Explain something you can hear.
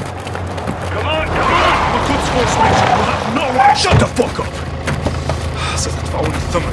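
A man shouts angrily at close range.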